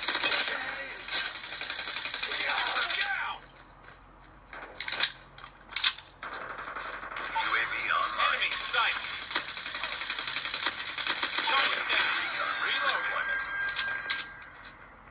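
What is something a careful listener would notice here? Rapid gunfire plays from a phone game's small speaker.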